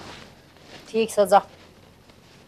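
A middle-aged man speaks nearby.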